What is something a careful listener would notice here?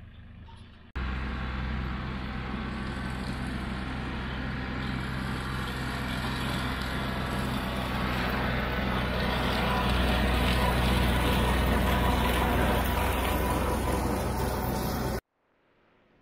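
A rotary mower whirs through tall grass.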